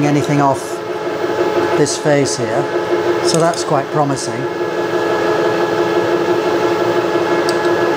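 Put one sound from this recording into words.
A milling cutter grinds into metal.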